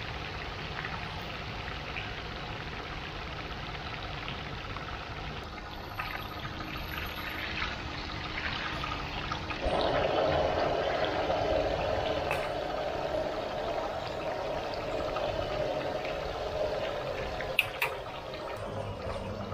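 Hot oil sizzles and bubbles steadily in a deep pan.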